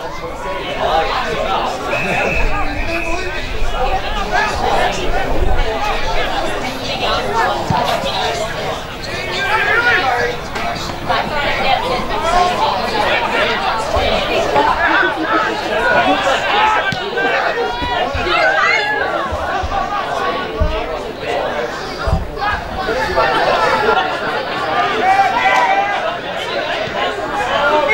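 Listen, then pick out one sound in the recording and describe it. Players shout to each other from far off across an open field.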